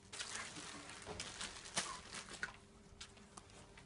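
Plastic bags crinkle as they are handled.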